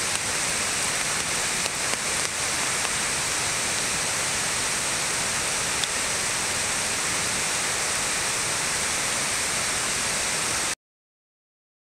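Water roars steadily over a spillway.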